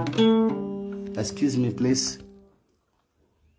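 An acoustic guitar is strummed and rings out.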